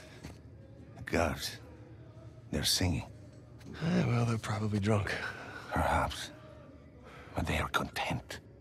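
A middle-aged man talks in a low voice.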